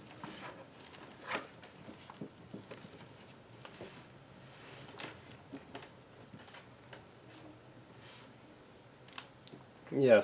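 Fingers tap and click on a laptop's keys and touchpad.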